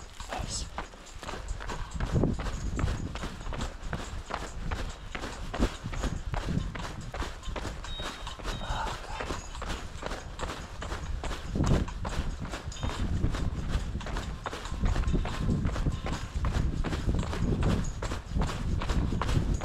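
Footsteps crunch steadily on a gravel trail.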